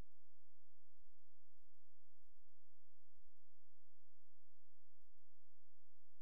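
A gramophone's tone arm clunks softly as it is moved into place.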